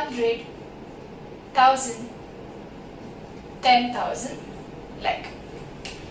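A young woman speaks calmly into a microphone, in short phrases.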